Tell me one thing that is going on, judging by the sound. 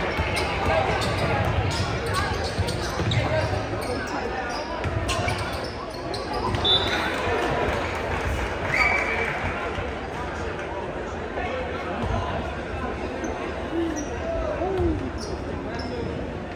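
A crowd of spectators chatters and calls out throughout.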